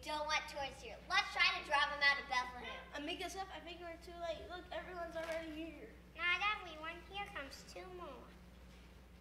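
A young girl speaks clearly and with expression.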